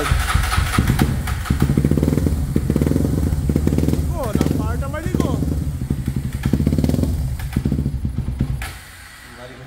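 A motorcycle engine idles with a steady, rapid rumble, then cuts off.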